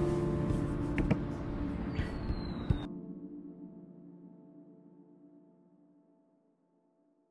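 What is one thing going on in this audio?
An acoustic guitar is strummed, and its chords ring out and fade slowly.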